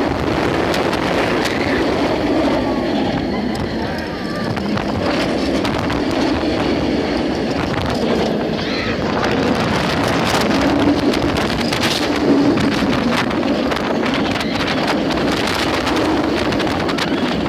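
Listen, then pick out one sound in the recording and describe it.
A roller coaster rattles and roars along its track at speed.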